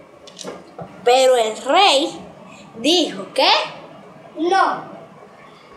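A little boy speaks close by.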